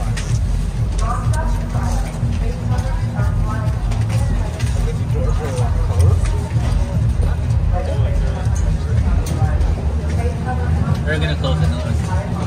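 People chatter in the distance outdoors.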